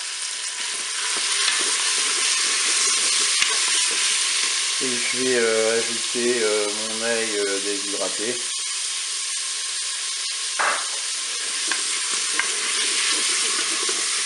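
A wooden spoon scrapes and stirs food in a pot.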